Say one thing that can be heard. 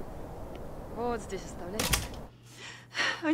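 A door thuds shut.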